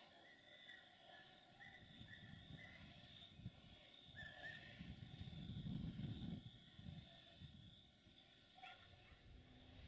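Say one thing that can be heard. A train rumbles as it approaches in the distance.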